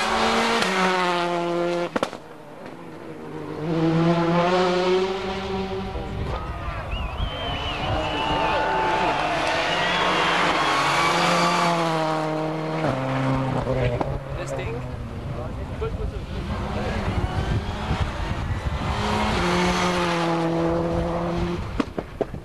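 Tyres skid and scrabble on tarmac.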